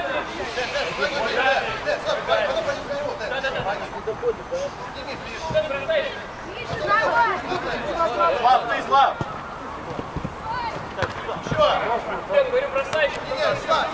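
Men shout and call to each other across an outdoor football pitch.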